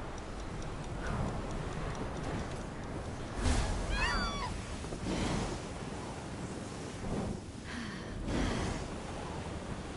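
Wings whoosh in repeated sweeping rushes.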